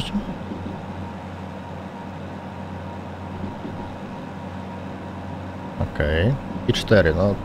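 A locomotive engine hums and rumbles steadily while the train rolls along the track.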